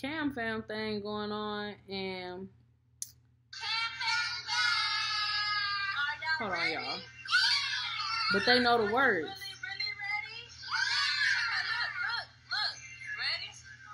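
A young woman sings up close, with pauses.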